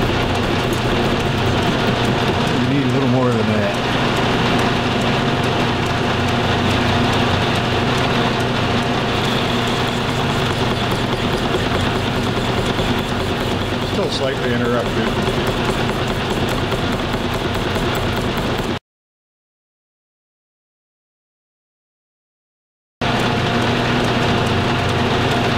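A cutting tool scrapes and squeals against spinning metal.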